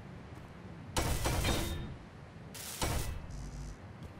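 A welding torch hisses in short bursts.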